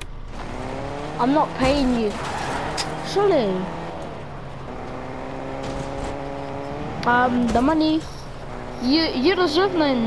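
A car engine hums as a car drives along.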